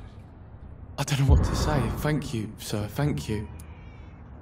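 A young man answers gratefully through a speaker.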